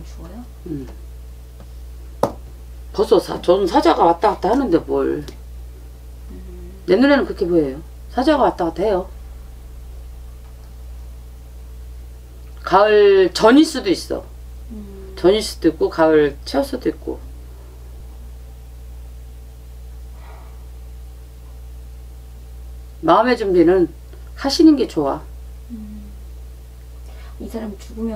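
A middle-aged woman talks with animation close by, in short bursts with pauses.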